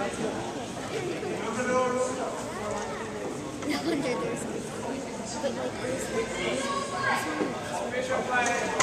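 Children's voices chatter and call out across a large echoing hall.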